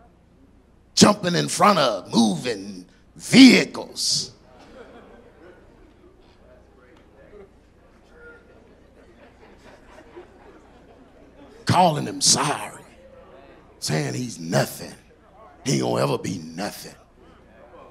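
A man speaks with animation into a microphone, heard through loudspeakers in a large echoing hall, in short bursts with pauses.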